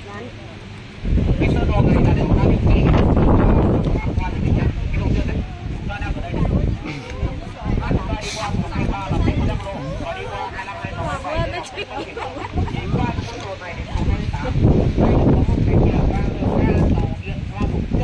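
Wind blows hard against the microphone.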